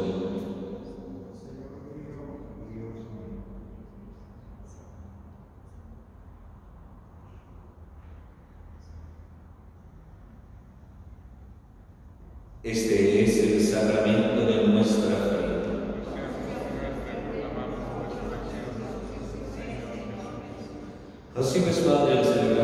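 A man chants through a microphone in an echoing hall.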